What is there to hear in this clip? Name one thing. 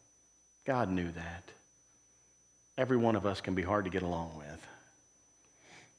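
A middle-aged man speaks with emphasis into a microphone.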